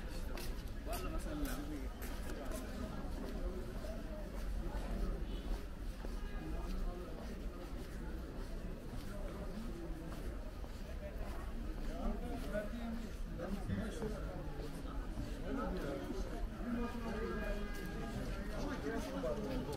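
Men and women chat in the distance outdoors, with many voices blending together.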